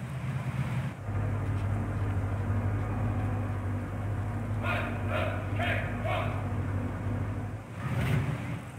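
Tank engines rumble low and steadily.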